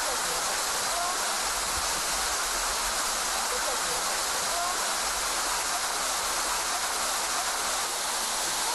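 A waterfall splashes and rushes steadily close by.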